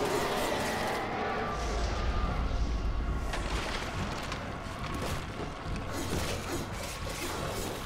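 Fiery blasts burst with a crackle.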